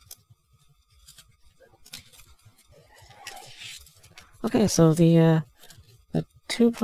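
Plastic toy parts click and tap softly as they are handled.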